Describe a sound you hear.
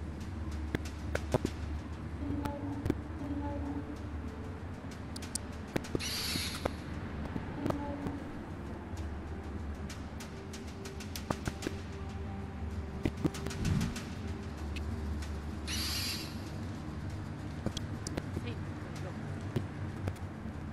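An owl's wings beat with soft whooshes.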